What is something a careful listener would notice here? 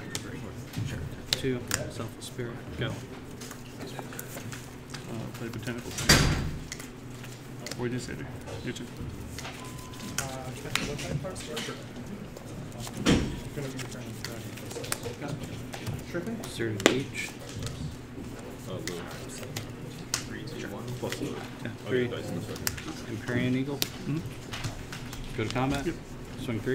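Playing cards are laid down on a soft mat with light taps.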